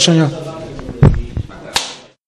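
Two men slap hands together.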